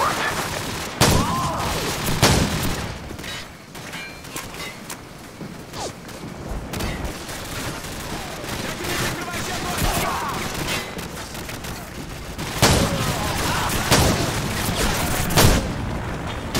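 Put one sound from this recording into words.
Gunshots fire in sharp, loud bursts.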